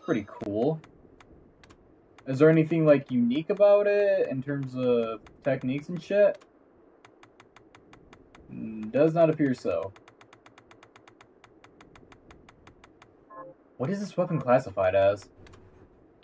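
Soft menu clicks tick as options change.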